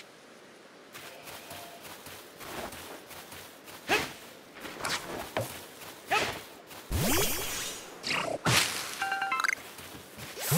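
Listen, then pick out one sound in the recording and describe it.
Footsteps run quickly through grass.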